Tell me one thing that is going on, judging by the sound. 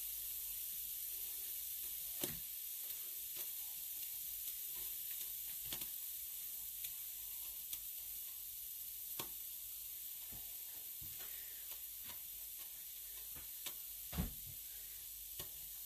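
Liquid simmers in a pot with soft bubbling pops.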